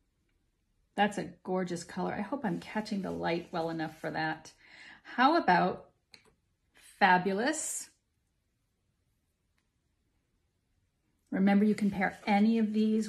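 A woman talks close to a microphone, calmly and with warmth.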